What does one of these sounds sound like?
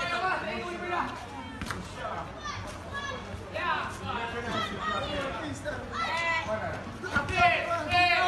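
Men shout excitedly outdoors in a street.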